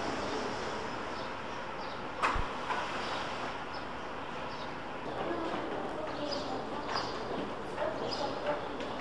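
A bus idles with a low hum at a stop.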